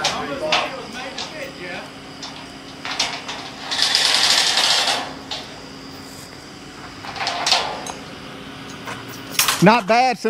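A heavy machine's engine idles steadily nearby.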